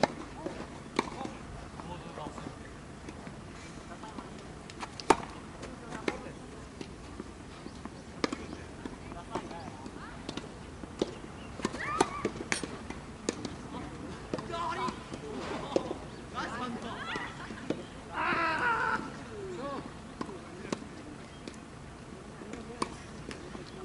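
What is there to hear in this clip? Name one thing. A ball bounces on the court.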